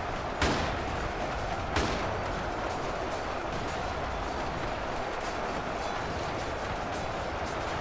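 Heavy gunfire crackles steadily.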